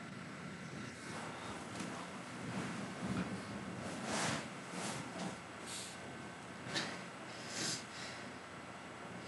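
A woman speaks quietly close to a microphone.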